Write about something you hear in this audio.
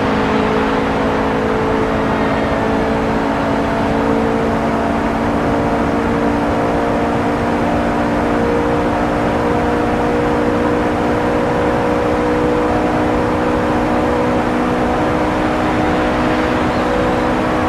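Tyres scrub on the track.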